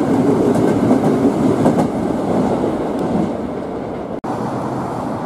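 A train rumbles past close by.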